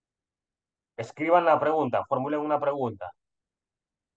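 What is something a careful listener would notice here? A man speaks calmly, explaining, heard through an online call.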